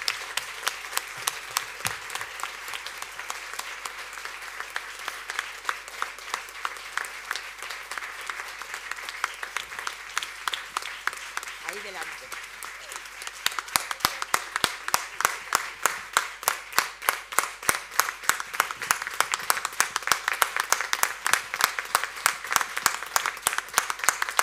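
A crowd applauds steadily in a large room, with close rhythmic claps growing louder.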